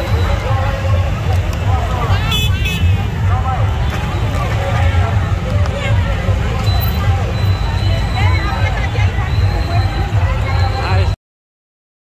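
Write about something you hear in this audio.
Motorbike engines idle and rumble nearby.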